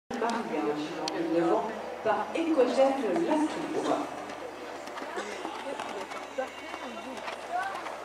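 A horse canters with soft hoof thuds on sand.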